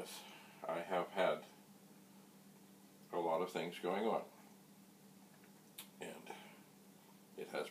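An elderly man speaks calmly in short phrases close by.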